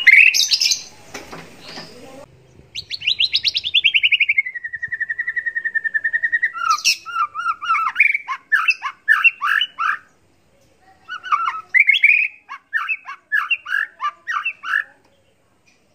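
A songbird sings loudly and close by, with rapid trills, long whistles and quick chirping phrases.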